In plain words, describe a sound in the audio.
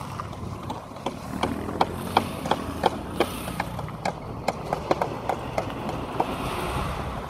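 Paving stones knock and tap sharply as they are laid.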